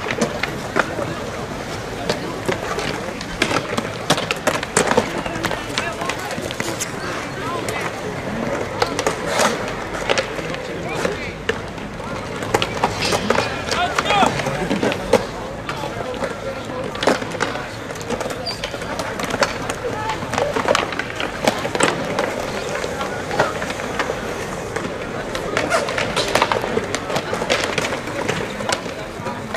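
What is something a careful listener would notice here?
Skateboard wheels roll over concrete with a gritty rumble.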